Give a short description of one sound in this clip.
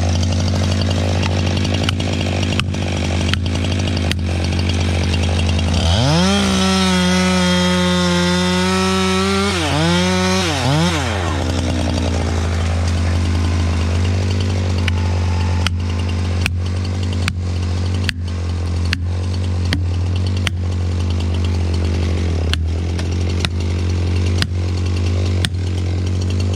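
An axe strikes wood with sharp knocks.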